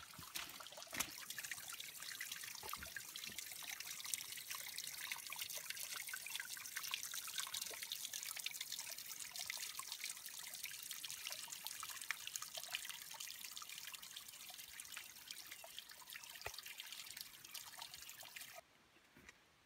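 Water trickles and splashes over rocks nearby.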